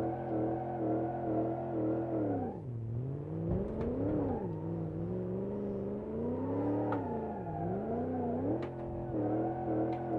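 Tyres screech as the car slides.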